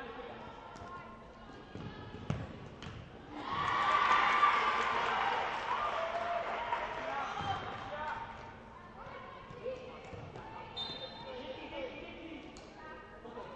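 Young women players call out to each other across a large echoing hall.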